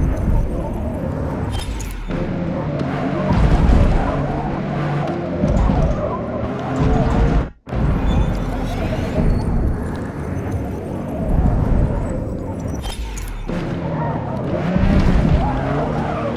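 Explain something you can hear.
Tyres squeal through corners.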